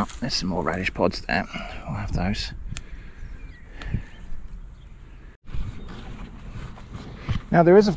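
Plant stems snap as they are picked by hand.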